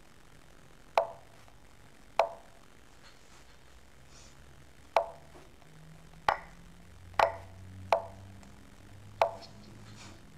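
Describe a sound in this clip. A chess piece clicks sharply as it is moved, again and again.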